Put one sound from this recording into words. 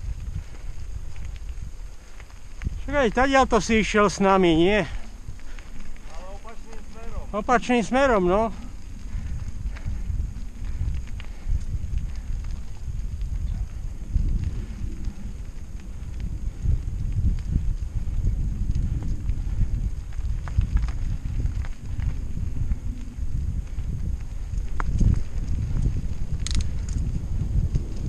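Wind rumbles against the microphone.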